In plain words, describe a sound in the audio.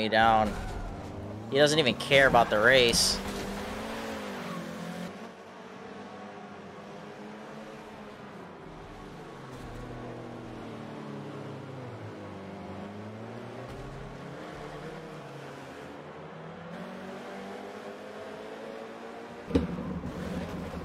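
Racing car engines rev and whine.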